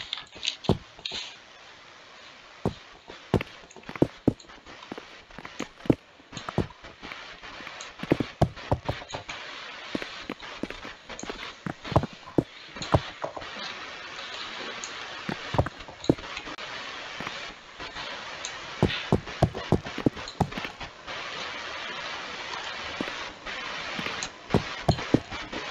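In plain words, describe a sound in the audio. Blocks break with quick crunching taps in a game.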